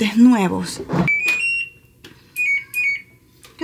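A washing machine beeps as its buttons are pressed.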